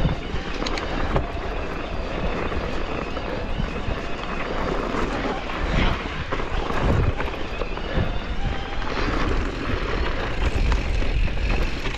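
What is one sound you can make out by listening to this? Bicycle tyres crunch and rattle over a rough, stony dirt trail.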